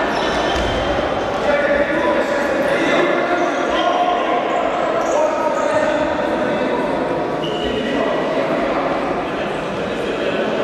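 Sneakers squeak on a wooden court in an echoing hall.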